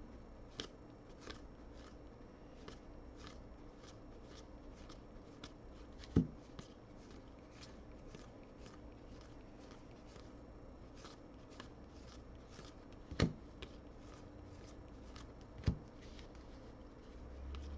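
Trading cards flick and slide against each other as they are shuffled by hand, close up.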